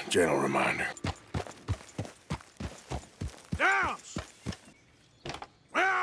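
Hooves thud as a horse trots.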